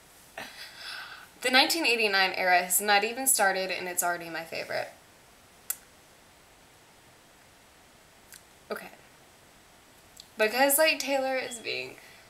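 A teenage girl sings close by, holding long notes.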